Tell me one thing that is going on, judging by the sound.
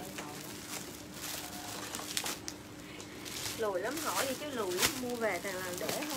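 Plastic packaging rustles and crinkles.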